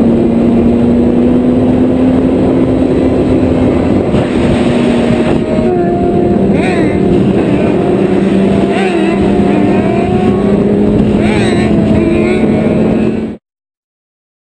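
Motorcycle engines roar loudly on a highway.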